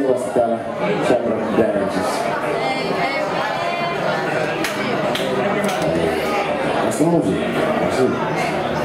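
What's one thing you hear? An electric bass guitar plays a driving line.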